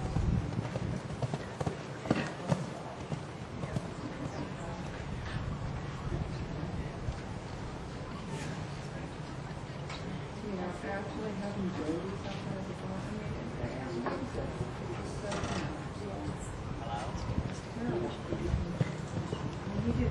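A horse's hooves thud on soft sand at a canter.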